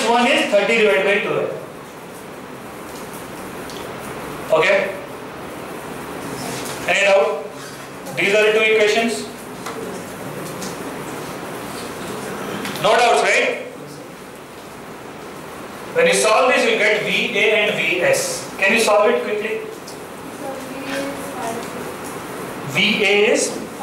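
A middle-aged man explains calmly through a head-worn microphone, in bursts with pauses.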